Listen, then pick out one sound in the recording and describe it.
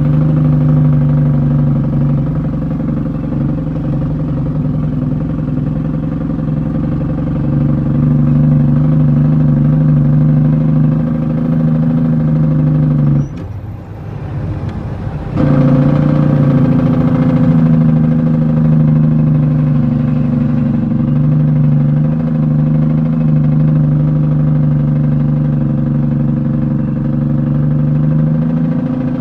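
A vehicle's engine drones steadily from inside the cab.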